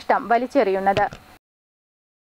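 A woman reads out calmly into a microphone.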